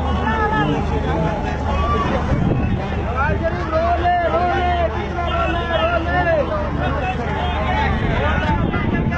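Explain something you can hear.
A large outdoor crowd cheers and chants loudly.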